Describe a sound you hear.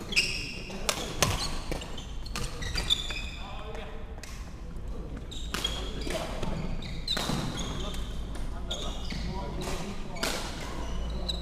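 Badminton rackets smack a shuttlecock in a large echoing hall.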